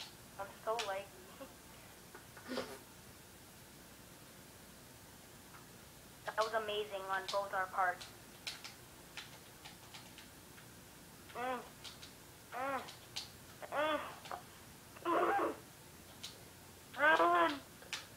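Cheerful video game sound effects chirp and blip from a television speaker.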